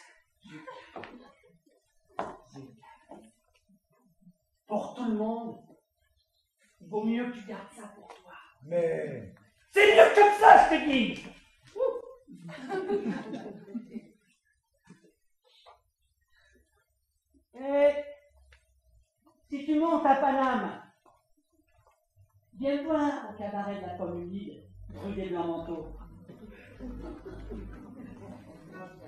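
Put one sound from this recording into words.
An elderly woman speaks theatrically, with pauses.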